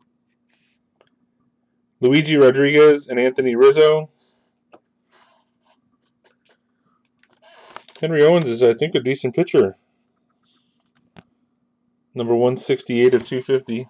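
Trading cards rustle and slide between fingers.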